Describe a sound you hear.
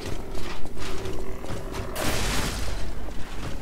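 Flames burst with a whoosh.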